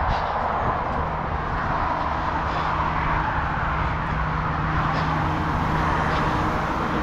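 A large lorry engine idles close by with a steady low hum.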